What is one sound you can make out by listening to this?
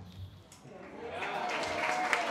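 An elderly man laughs softly into a microphone.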